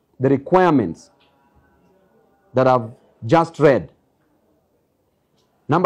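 A man speaks calmly and deliberately into microphones close by, with pauses.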